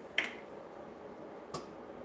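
Thick liquid squirts from a bottle into a bowl.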